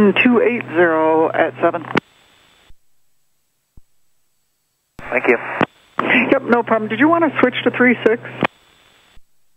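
A young man speaks calmly through a headset microphone.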